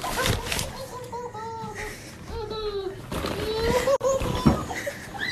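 A baby squeals and babbles.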